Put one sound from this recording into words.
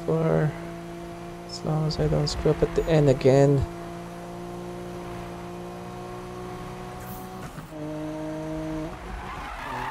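A racing car engine hums steadily and revs up and down.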